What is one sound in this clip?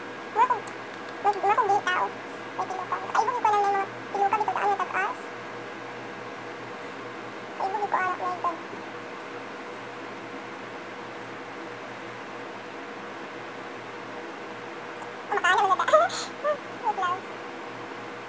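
A young woman talks calmly and close by, pausing often.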